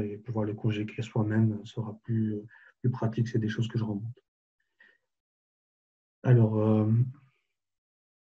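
A man speaks calmly into a headset microphone, in short bursts.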